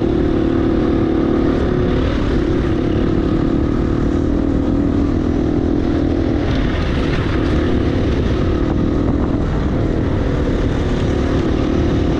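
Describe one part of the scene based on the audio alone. A dirt bike engine revs loudly up close, shifting pitch as the rider accelerates.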